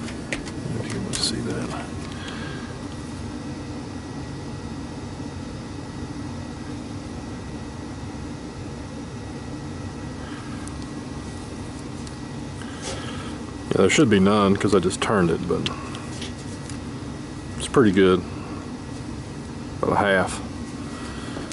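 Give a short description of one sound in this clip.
Metal parts clink softly as a heavy lathe chuck is handled.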